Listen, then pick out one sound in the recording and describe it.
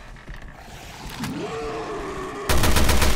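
A creature groans and snarls nearby.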